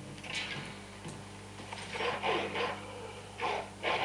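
Wolves growl and snarl nearby.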